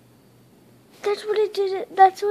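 A young boy speaks close up, in a high, lively voice.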